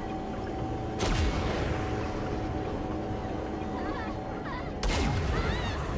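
A cannon fires with loud blasts.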